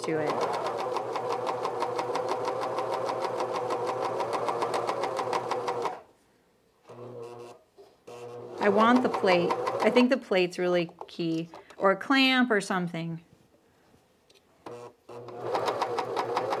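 A sewing machine runs with a fast, steady whirring hum.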